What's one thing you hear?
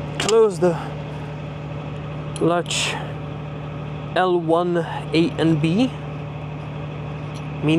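Metal parts click as hands work on an aircraft fitting.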